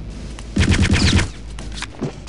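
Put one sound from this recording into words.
A gun fires a short burst of loud shots.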